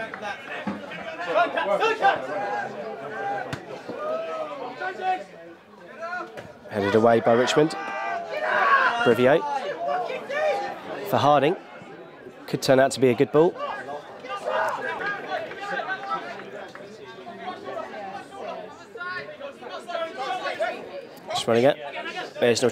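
A crowd of spectators murmurs and calls out outdoors.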